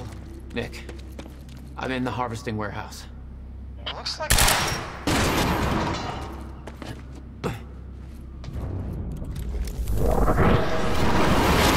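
Footsteps run across a metal floor.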